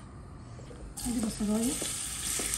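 Chopped onions sizzle as they drop into hot oil in a pan.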